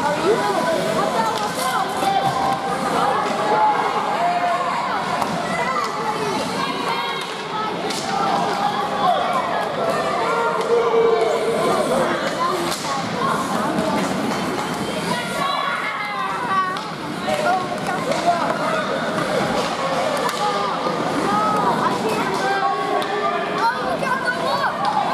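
A crowd of men and women chatters and calls out nearby in a large echoing hall.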